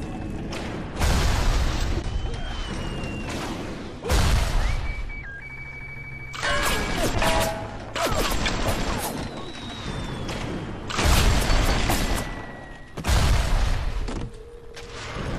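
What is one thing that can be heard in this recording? Explosions boom and rumble, echoing in a large hall.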